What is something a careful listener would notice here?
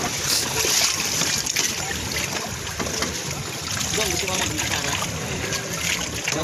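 Waves lap steadily against a floating raft.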